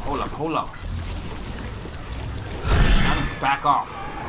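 A loud magical blast bursts and crackles.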